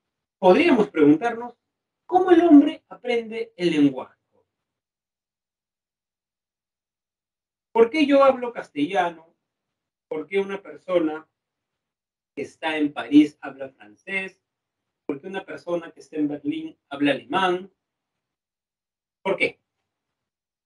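A young man speaks calmly into a microphone over an online call, in short bursts with pauses.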